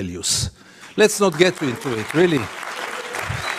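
A man speaks firmly into a microphone in a large hall.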